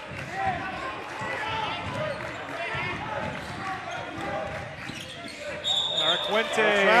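A crowd of spectators murmurs in an echoing gym.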